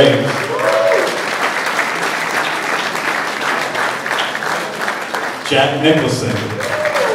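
A group of people applaud in a large room.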